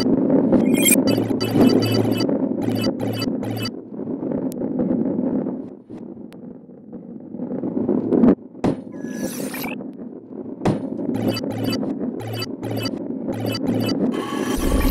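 Coins chime in quick bursts.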